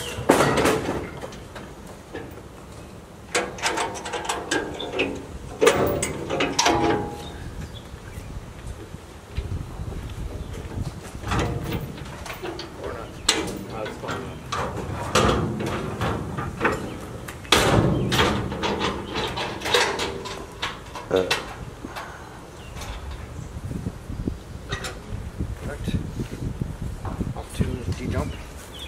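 A truck engine idles nearby with a low rumble.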